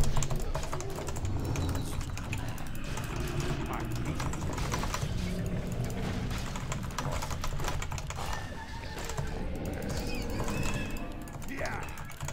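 Game battle sounds of spells and clashing weapons ring out.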